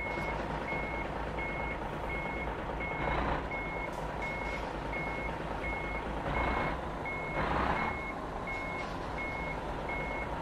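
A truck's reversing alarm beeps steadily.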